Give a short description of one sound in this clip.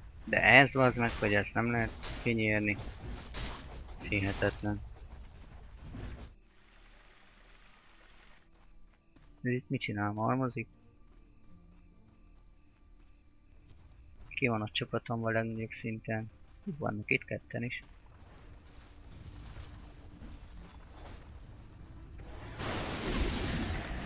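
Fantasy battle sound effects clash and crackle as spells are cast.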